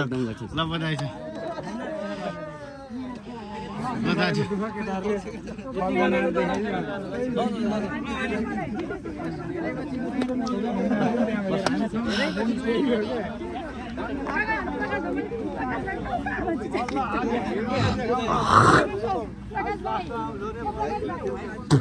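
Several young men talk and chatter close by, outdoors.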